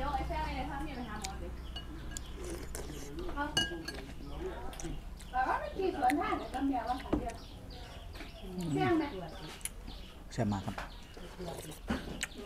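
A young man slurps noodles.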